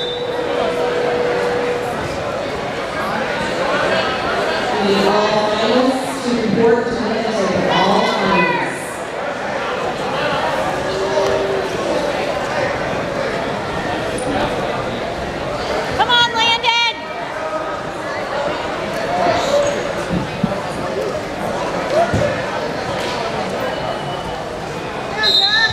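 A crowd of spectators shouts and cheers in a large echoing gym.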